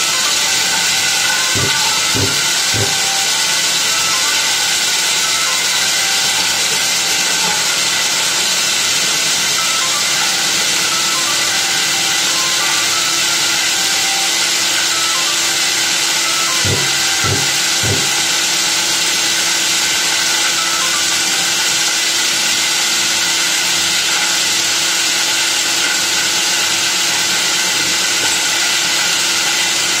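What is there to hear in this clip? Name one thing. A core drill grinds steadily into a wall at close range.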